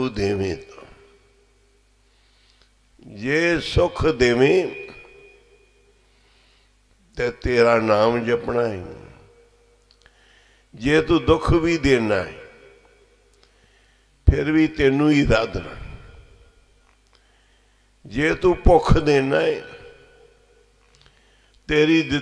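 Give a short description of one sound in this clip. An elderly man sings slowly into a microphone in long drawn-out phrases, with pauses between them.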